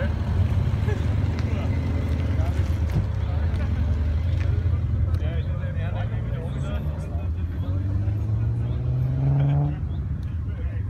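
A car engine rumbles and revs as a car pulls away.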